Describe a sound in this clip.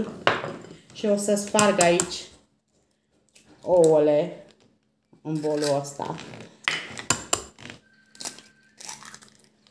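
An egg cracks against the rim of a glass bowl.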